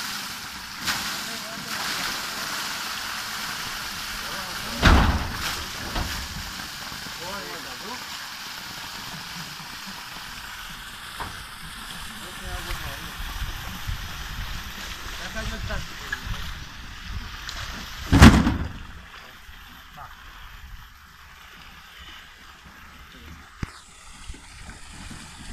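Water gushes and splashes onto the ground.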